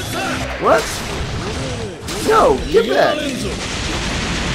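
A man talks excitedly into a microphone.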